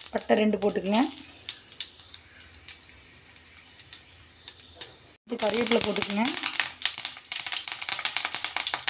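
Oil sizzles and crackles in a hot pan.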